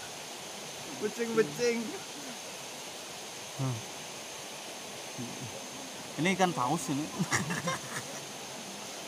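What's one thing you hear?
A young man speaks cheerfully close by.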